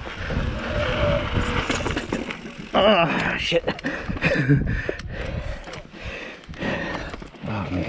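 Bicycle tyres roll and crunch over a dirt and rock trail.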